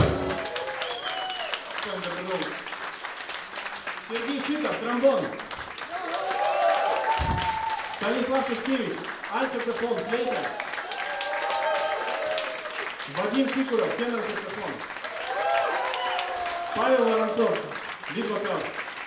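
An audience and musicians clap along in rhythm.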